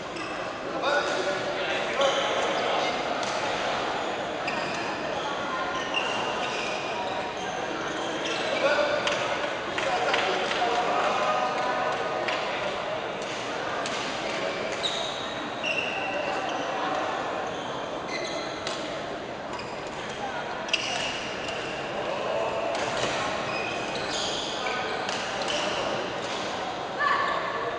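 A crowd of people chatters throughout, echoing in a large hall.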